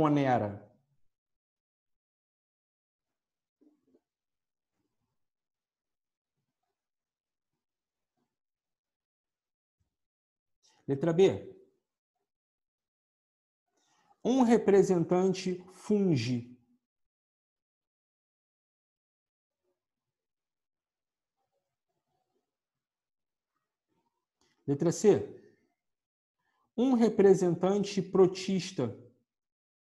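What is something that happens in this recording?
A man speaks calmly and close by in short bursts, with long pauses.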